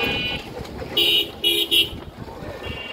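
A vehicle horn honks several times in short blasts.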